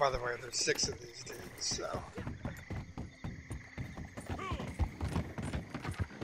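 Horse hooves clop on wooden boards at a walk.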